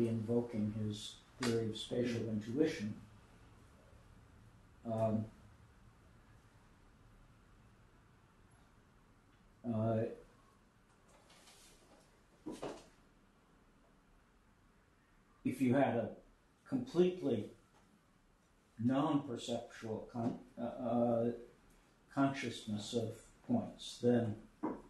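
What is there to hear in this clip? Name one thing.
An elderly man speaks calmly in bursts, with pauses.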